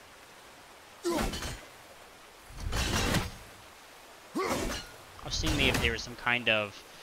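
An axe whooshes through the air and thuds against rock.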